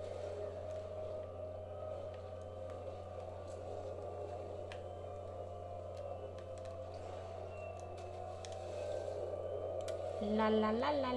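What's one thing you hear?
A television buzzes with static.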